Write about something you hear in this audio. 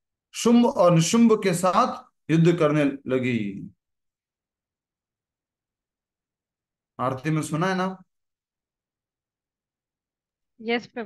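A man speaks calmly in short phrases through a microphone on an online call, with pauses.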